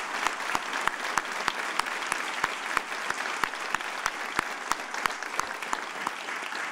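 A man claps his hands steadily close to a microphone.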